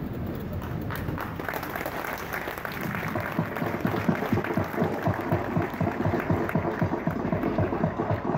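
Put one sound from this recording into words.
A crowd applauds in a large echoing hall.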